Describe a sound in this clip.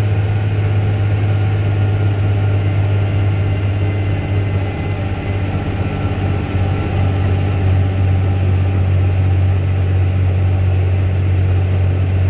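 Tyres crunch and rumble on a gravel road.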